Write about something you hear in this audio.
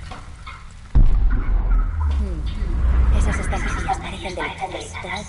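A deep, heavy boom rumbles and fades.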